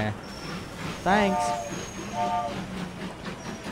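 A steam engine whistle blows.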